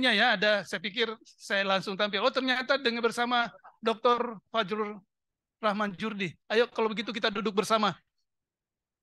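A middle-aged man speaks with animation into a microphone in a large room.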